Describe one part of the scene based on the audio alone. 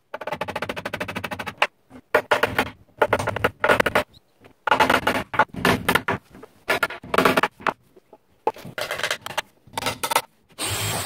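A hammer taps rapidly on wood.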